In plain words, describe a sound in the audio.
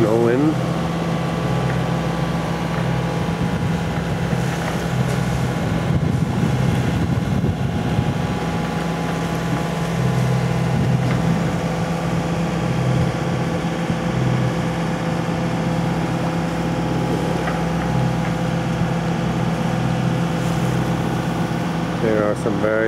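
Water washes gently along a boat's hull.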